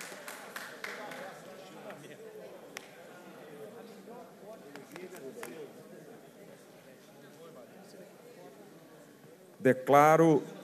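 Several people chat quietly in a large hall.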